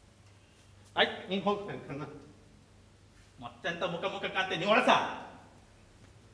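A young man speaks with animation in a large echoing hall.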